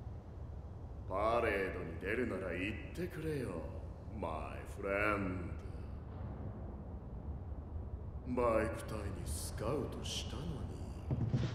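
A young man speaks calmly and with confidence.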